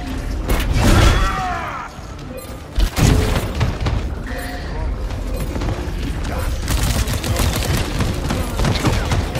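Gunfire blasts rapidly.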